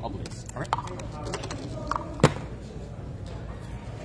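Dice rattle in a hand and roll onto a table.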